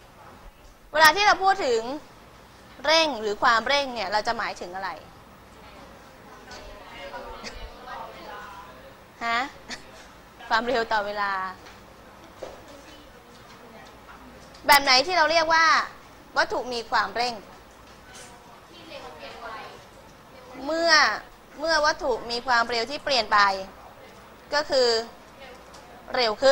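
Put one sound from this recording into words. A young woman speaks clearly into a clip-on microphone, in bursts with pauses.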